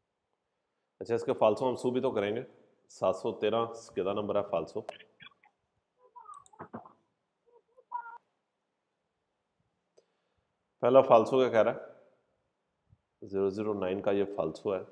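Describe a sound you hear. A man speaks calmly into a microphone, as if on an online call.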